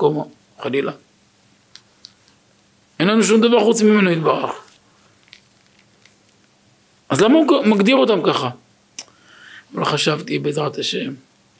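A middle-aged man speaks with animation into a close microphone, in short bursts with pauses.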